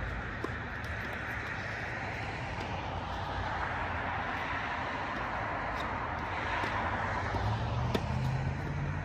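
A tennis ball is struck with a racket with sharp pops.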